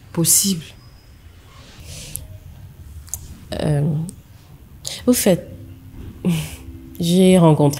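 A young woman speaks calmly with a slight laugh close by.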